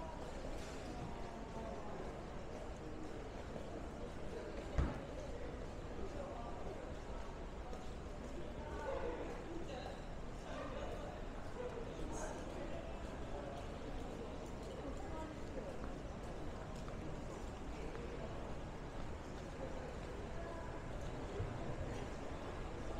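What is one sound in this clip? A crowd murmurs faintly.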